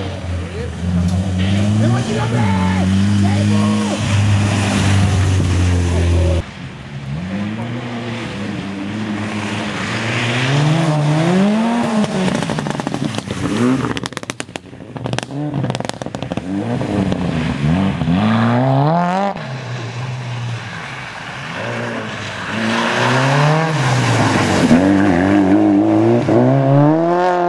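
A rally car engine revs hard, roaring and changing pitch as it passes.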